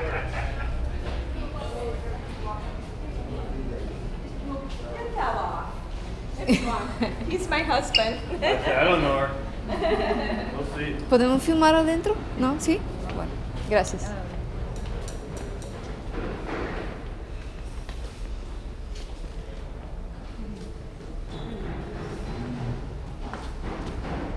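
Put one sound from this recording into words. Footsteps shuffle on a tiled floor.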